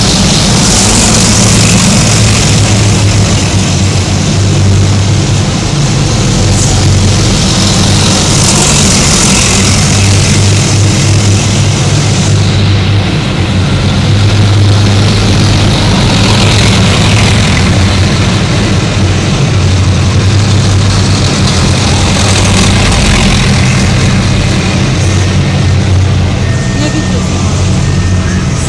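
Metal tracks clatter and squeak on the road as the vehicles pass.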